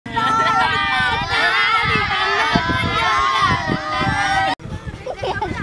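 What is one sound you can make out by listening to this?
A group of young boys laugh and shout playfully close by.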